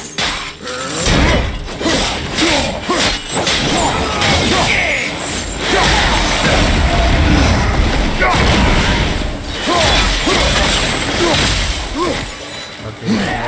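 Heavy weapon blows thud and clang in a fast fight.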